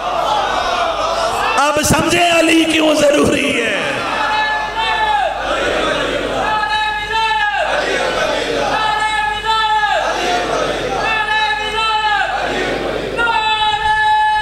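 A man chants loudly through a microphone and loudspeakers.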